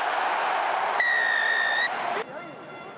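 A referee blows a long, loud whistle blast.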